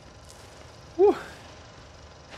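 A young man cries out briefly, close to a microphone.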